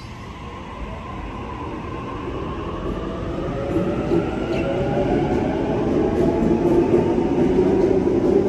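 An electric train pulls away with a rising whine and rumble.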